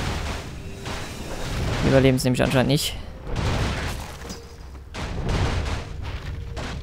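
Creatures clash and strike in a noisy battle.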